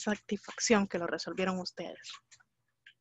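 A young woman talks with animation through an online call.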